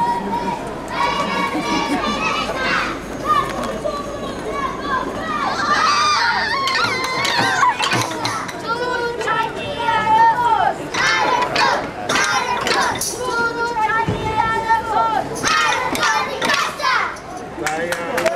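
A group of children sing loudly together outdoors.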